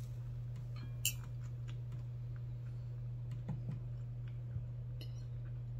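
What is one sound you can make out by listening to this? A fork clinks against a plate.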